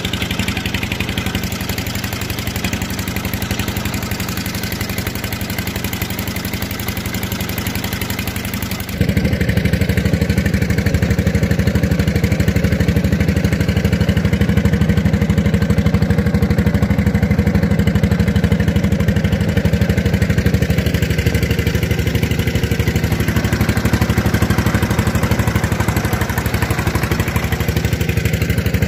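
A boat engine drones steadily, growing louder partway through.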